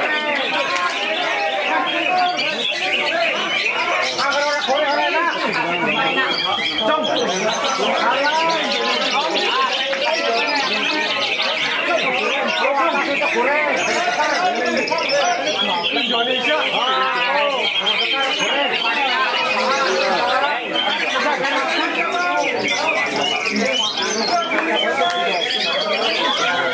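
A songbird sings loud, fast, warbling chirps without pause.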